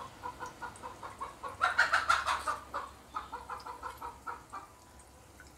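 Batter sizzles and crackles in hot oil.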